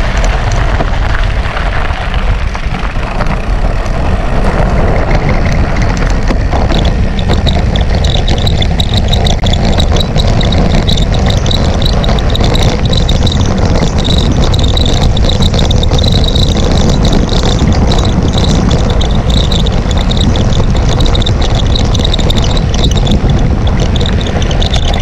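Bicycle tyres crunch over loose gravel.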